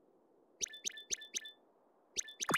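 Short electronic menu blips sound in quick succession.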